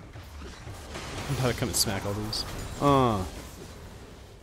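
Magic spell effects whoosh and crackle in a fight.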